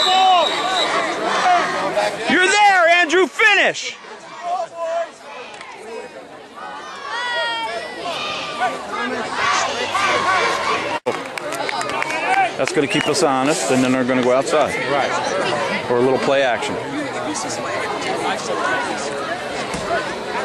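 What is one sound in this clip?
Spectators in a nearby outdoor crowd shout and cheer.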